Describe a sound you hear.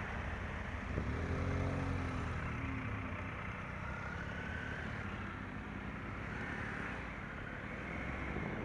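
Several motorcycles rev and pull away nearby.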